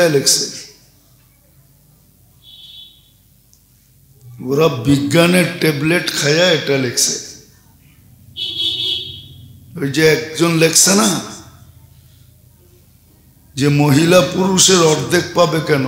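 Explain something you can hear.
A middle-aged man preaches with animation into a microphone, heard through a loudspeaker with pauses between phrases.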